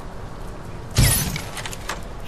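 A crossbow is cocked with a sharp mechanical clack.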